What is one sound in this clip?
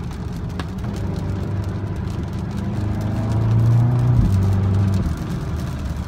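A car engine revs up and rises in pitch as the car speeds up.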